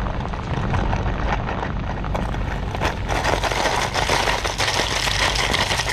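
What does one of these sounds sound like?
Plastic fishing lures rattle and clack inside a plastic box.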